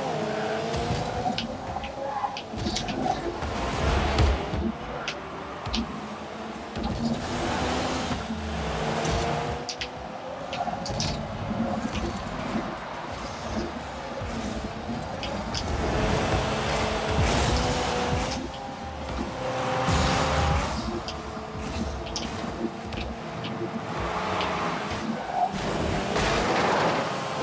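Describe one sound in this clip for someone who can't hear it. A game car's engine drones and shifts in pitch.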